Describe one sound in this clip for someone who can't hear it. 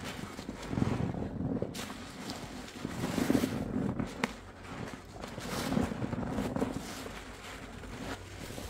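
A wet sponge squelches as it is squeezed.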